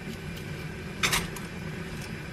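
Metal tongs clink against a pot.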